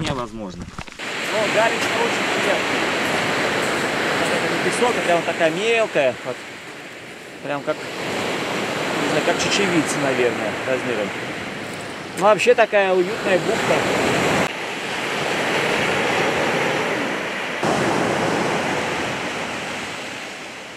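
Waves wash and break on a rocky shore.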